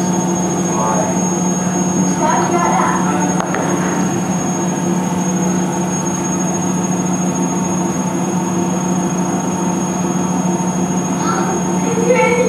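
A young child speaks softly, heard through a loudspeaker in a large room.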